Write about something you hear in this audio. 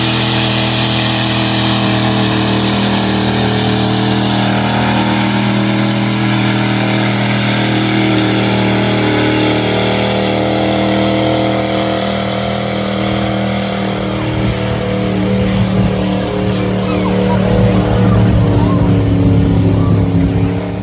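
A truck engine roars loudly and steadily while pulling a heavy sled.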